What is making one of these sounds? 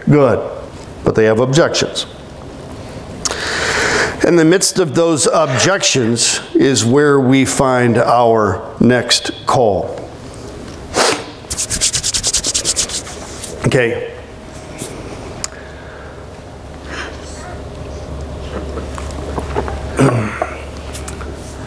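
A middle-aged man speaks through a microphone to a room.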